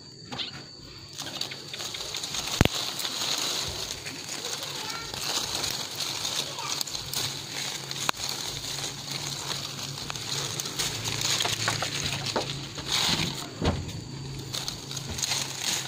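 Leaves rustle as a hand brushes through a fruit tree's branches.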